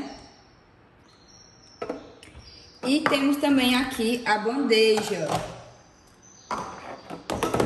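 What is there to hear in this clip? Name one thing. Plastic cups clack as they are set down and picked up from a plastic tray.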